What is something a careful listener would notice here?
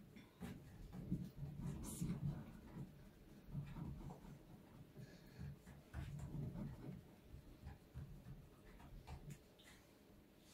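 Dough pats and presses on a board.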